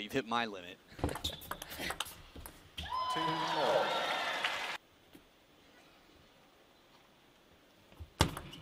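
A table tennis ball clicks against paddles and the table.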